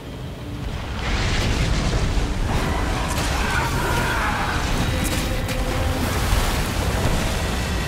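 A huge creature roars loudly.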